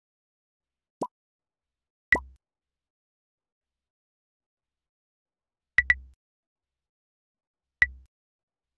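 Short electronic blips and pops sound as game messages pop up.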